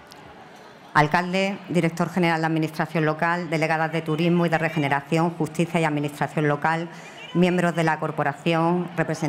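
A woman speaks clearly into a microphone over loudspeakers.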